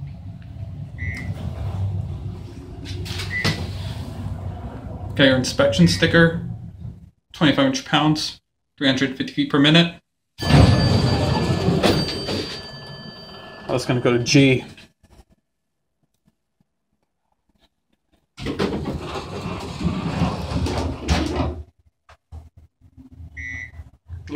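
An elevator chime beeps softly.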